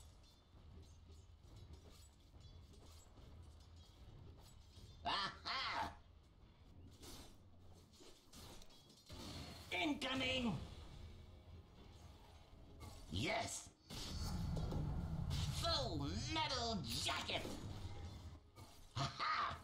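Fantasy battle sounds clash and crackle with spell effects.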